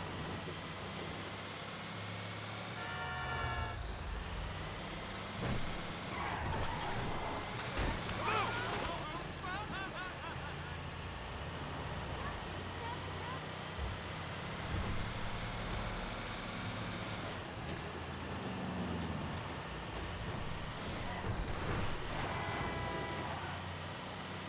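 A truck engine rumbles steadily as it drives along.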